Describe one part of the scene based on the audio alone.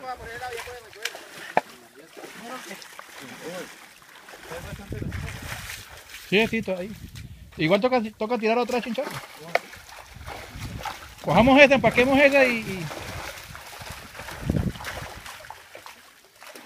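Water splashes as men wade and drag a net.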